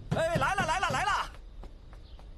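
A man shouts in the distance.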